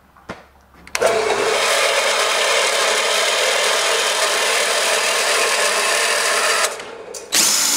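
A metal-cutting band saw cuts through a steel bar.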